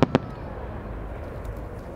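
A firework bursts with a sharp bang outdoors.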